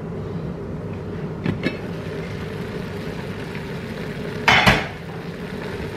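A metal lid clinks against a pot.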